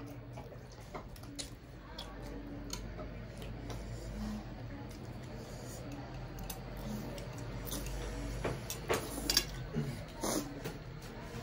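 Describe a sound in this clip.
A young woman slurps noodles loudly and close by.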